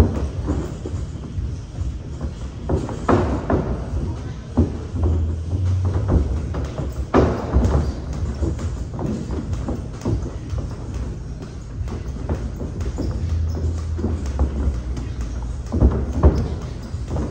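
Boxing gloves thump against focus mitts in quick bursts.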